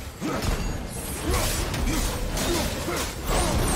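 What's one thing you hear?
A fiery blade whooshes through the air.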